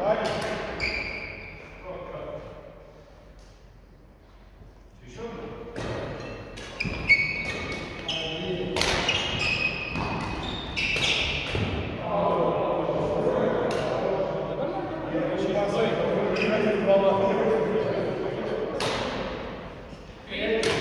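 Shuttlecocks are hit sharply with rackets in a large echoing hall.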